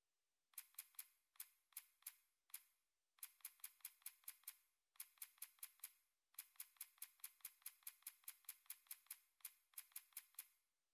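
Short, bright menu clicks tick in quick bursts.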